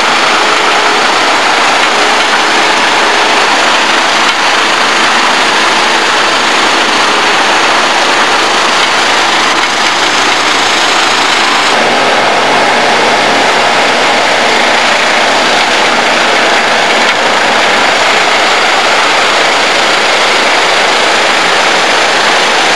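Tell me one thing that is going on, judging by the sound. A heavy machine engine roars steadily outdoors.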